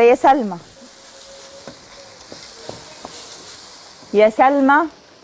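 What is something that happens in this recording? A woman speaks with animation close to a microphone.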